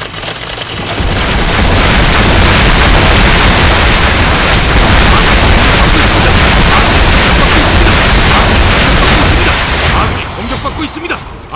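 Rocket launchers fire a rapid, roaring barrage.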